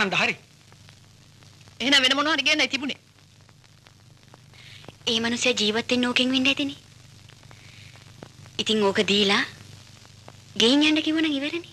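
A young woman sings a melody in short phrases with pauses between them.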